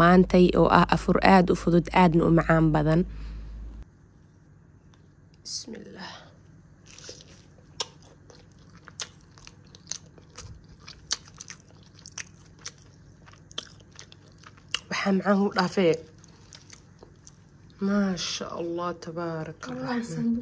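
A crisp, toasted flatbread crackles as it is pulled apart.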